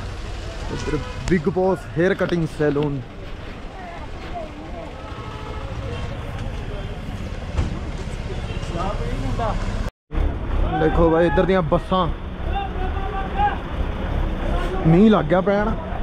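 Young men talk casually close by, outdoors.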